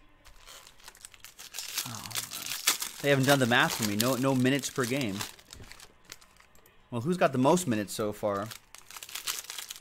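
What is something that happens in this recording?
Foil card wrappers crinkle and tear.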